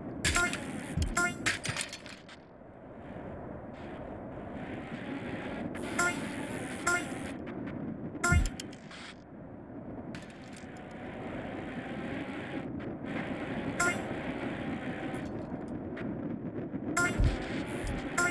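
A bicycle lands with a heavy thump.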